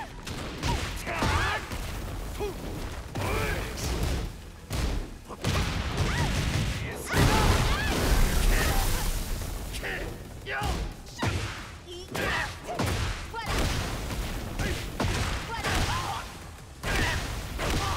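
A fighter grunts and shouts with each attack.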